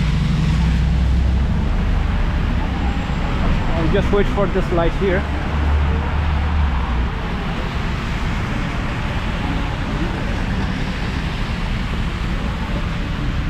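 Cars hiss past on a wet, slushy road.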